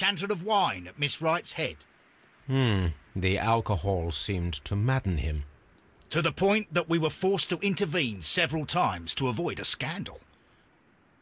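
A middle-aged man speaks calmly and clearly.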